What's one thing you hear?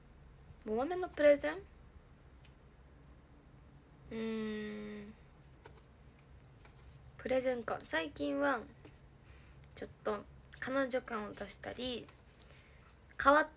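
A young woman speaks softly, close to the microphone, in short bursts.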